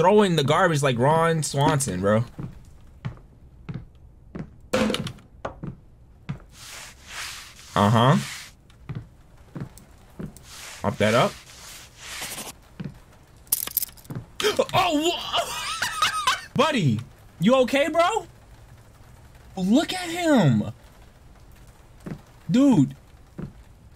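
A young man talks with animation close to a microphone, now and then exclaiming.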